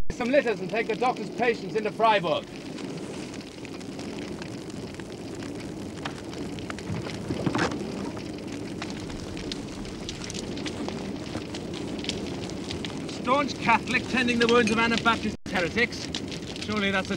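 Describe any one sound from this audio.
Flames roar and crackle loudly.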